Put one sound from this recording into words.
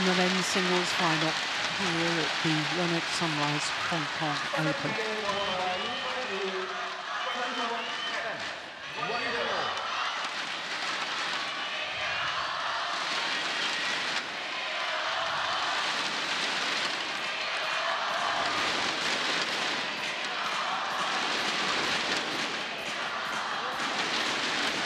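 A large crowd claps in a big echoing hall.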